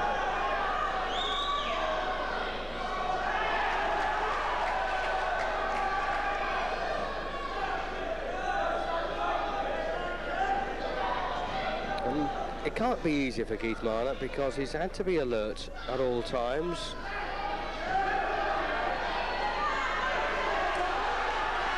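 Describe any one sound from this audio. A crowd murmurs and chatters throughout in a large echoing hall.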